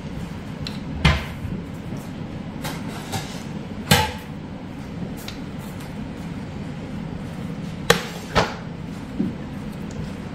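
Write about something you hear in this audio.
A metal ladle clinks against a pan.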